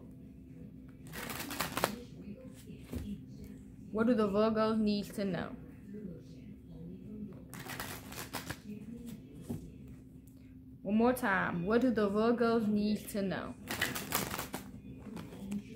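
Playing cards riffle and flutter as a young woman shuffles them.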